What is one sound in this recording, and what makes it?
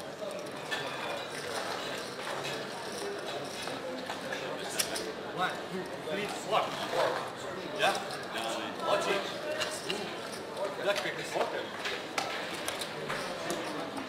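Casino chips click and clatter.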